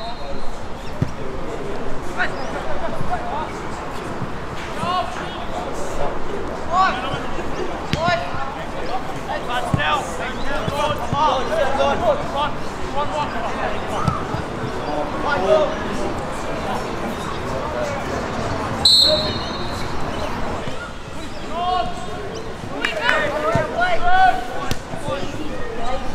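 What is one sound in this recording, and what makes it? A football thuds when kicked.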